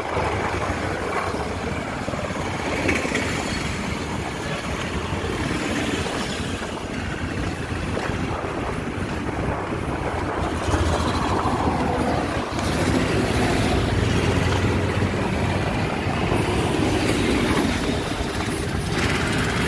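Traffic drives past on a road outdoors.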